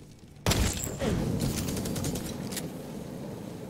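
Fire crackles and hisses.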